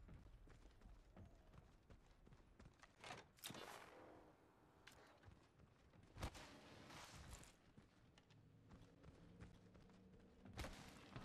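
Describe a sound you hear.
Quick footsteps clank on metal flooring.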